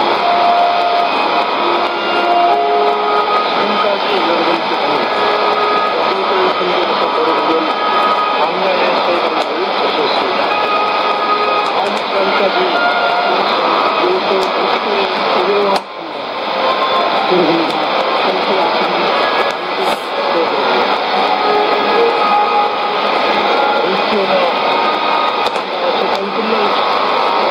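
Static hisses steadily from a radio speaker.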